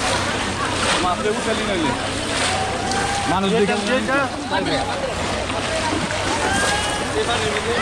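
A bamboo fish trap thumps down into the water.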